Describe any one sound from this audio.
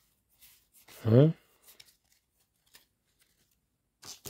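Playing cards flick and rustle in hands.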